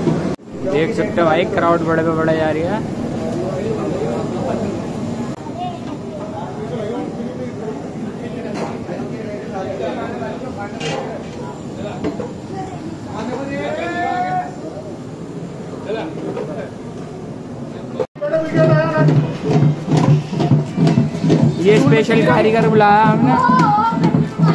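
Several young men talk with animation close by.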